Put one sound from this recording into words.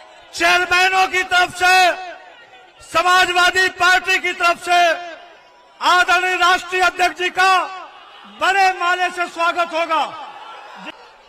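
An elderly man shouts forcefully into a microphone over loudspeakers.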